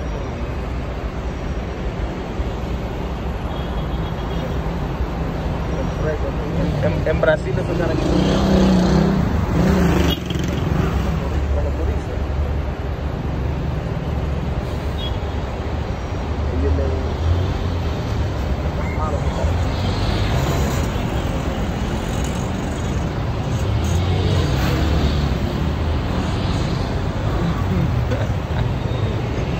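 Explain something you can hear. Car engines idle steadily in heavy traffic outdoors.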